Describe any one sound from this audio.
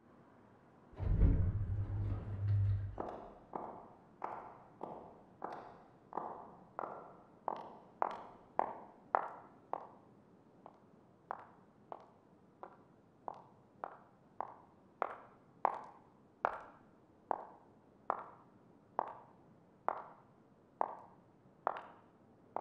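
High-heeled footsteps echo at a slow, steady pace in a large, hollow space.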